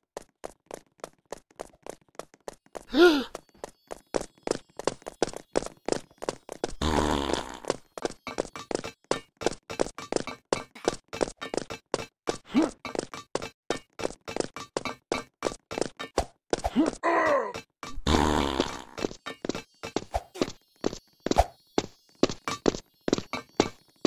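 Quick footsteps patter steadily as a game character runs.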